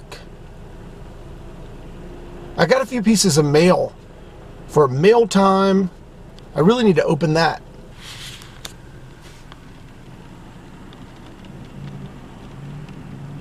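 Rain patters on a car windscreen.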